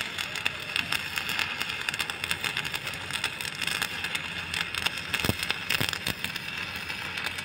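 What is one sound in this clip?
An arc welder crackles and sizzles steadily.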